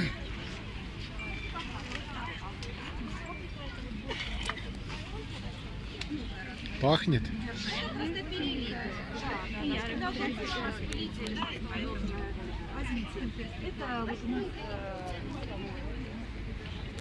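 Women talk and chatter close by, outdoors.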